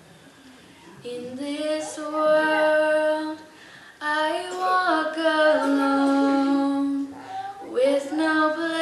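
Young girls sing together in harmony through a microphone.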